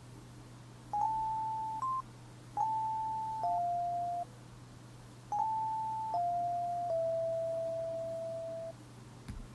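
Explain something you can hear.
A synthesizer plays a short, slow melody of held electronic notes.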